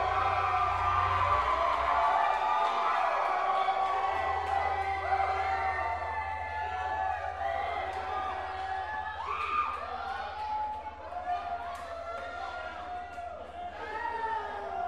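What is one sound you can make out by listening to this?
Electric guitars drone with loud, wavering feedback through amplifiers.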